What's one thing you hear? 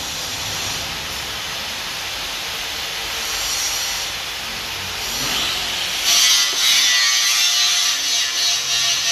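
A metal lathe whirs steadily as it cuts, with a loud hissing scrape.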